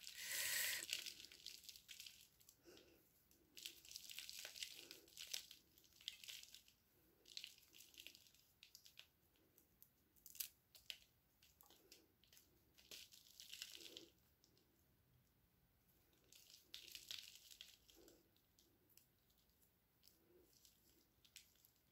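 Fingers crumble dry moss and soil from plant roots with soft rustling and crackling.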